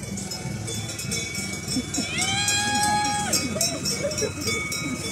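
A group of men and women chatter and call out nearby, outdoors.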